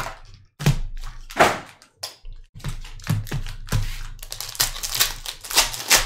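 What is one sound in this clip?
Foil card packs crinkle and tear open.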